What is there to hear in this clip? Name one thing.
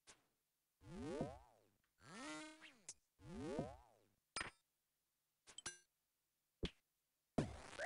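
Video game spell and combat effects whoosh and chime in short bursts.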